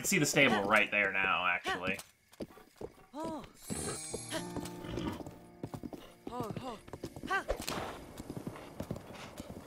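A horse gallops, its hooves thudding steadily on soft ground.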